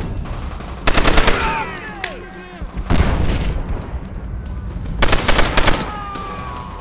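A machine gun fires loud rapid bursts.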